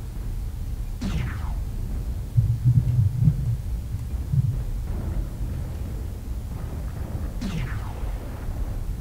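Laser weapons fire with sharp, falling zaps.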